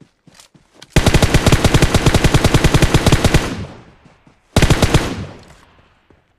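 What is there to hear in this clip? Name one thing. An automatic rifle fires rapid, loud bursts.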